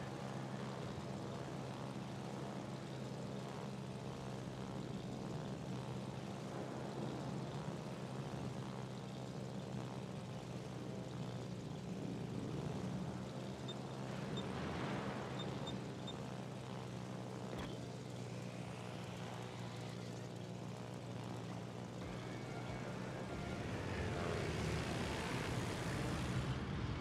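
Propeller aircraft engines drone steadily.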